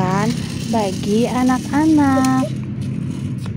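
A small child calls out in a high voice.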